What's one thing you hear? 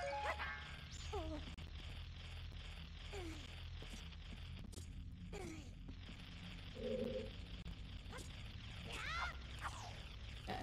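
Short chirping and swooping video game sound effects ring out.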